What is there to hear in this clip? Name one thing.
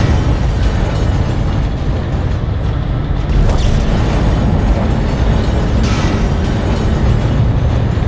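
Steam hisses out in a burst.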